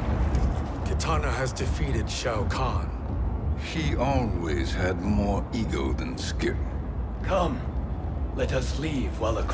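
A man speaks calmly and gravely.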